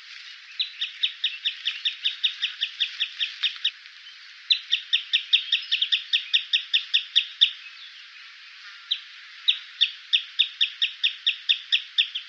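A wading bird calls in fast, high, piping notes repeated in bursts.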